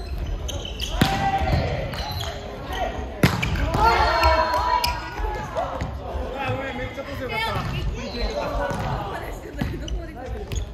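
Young men and women call out and shout to each other during play.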